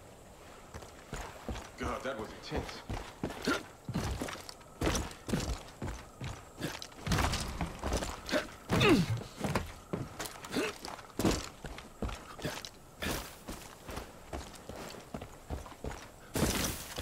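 Footsteps crunch over rough ground at a steady pace.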